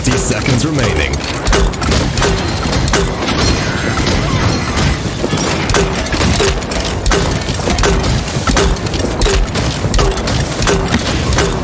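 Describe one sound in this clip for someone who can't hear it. A heavy weapon fires in rapid repeated blasts.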